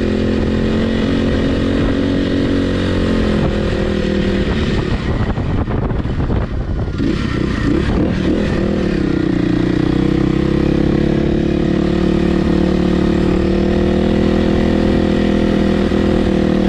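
A dirt bike engine roars close by, rising and falling in pitch as the rider shifts.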